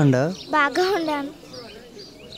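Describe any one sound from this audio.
A young girl laughs and speaks excitedly close by.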